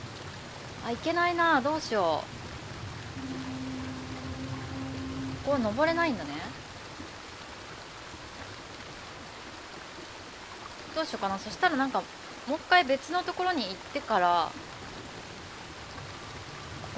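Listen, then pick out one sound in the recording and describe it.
A waterfall rushes steadily.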